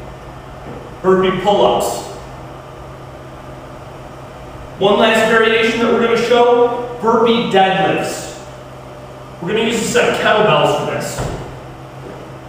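A man talks calmly at a short distance in an echoing room.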